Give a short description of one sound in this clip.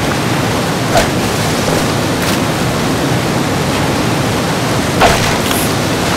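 A wooden crate knocks and bumps in water.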